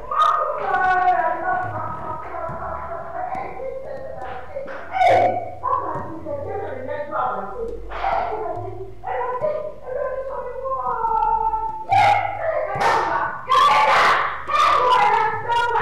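A woman wails and cries out in distress.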